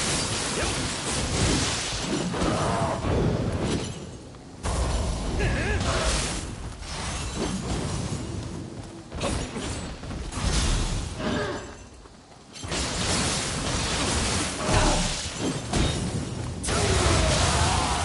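Blades clash and slash in rapid bursts.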